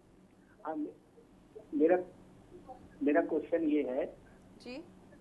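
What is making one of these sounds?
A woman speaks calmly through a microphone in short phrases.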